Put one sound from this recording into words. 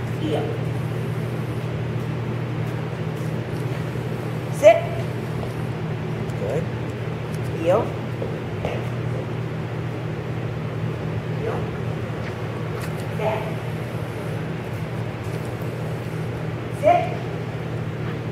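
A woman gives short commands to a dog.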